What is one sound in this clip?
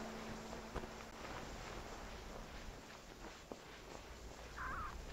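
Sand hisses softly under something sliding down a dune.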